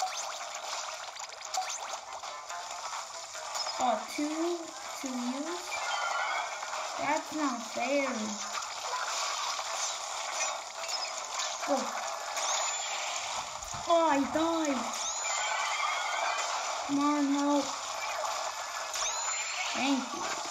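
Video game sound effects splash, splat and squelch from a small speaker.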